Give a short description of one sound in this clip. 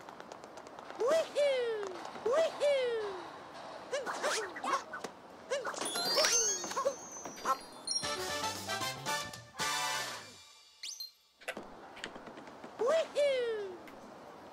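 Cartoonish jumping sound effects from a video game chirp again and again.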